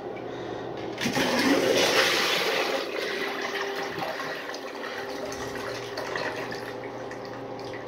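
A toilet flushes with a rushing swirl of water that slowly fades.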